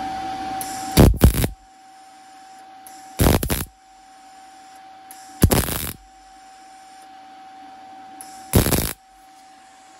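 A welder crackles and buzzes in short bursts as it tacks metal.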